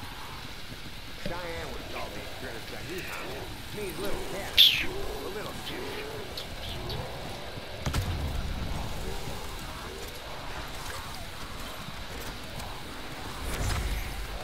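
A ray gun fires with buzzing energy blasts.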